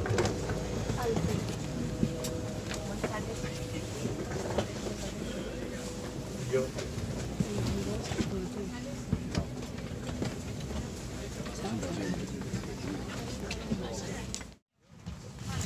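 Passengers talk quietly nearby.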